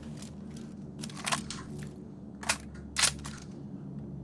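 A rifle is reloaded with sharp metallic clicks.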